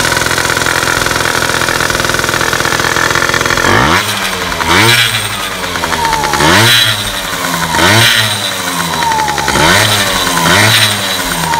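A scooter engine idles steadily, then revs up and down repeatedly.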